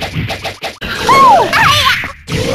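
A burst of energy blasts with a loud whoosh.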